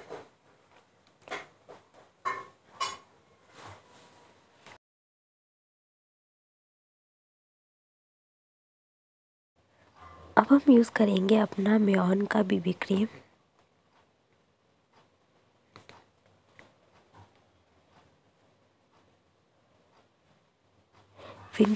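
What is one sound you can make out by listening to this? Fingers pat and tap softly on skin.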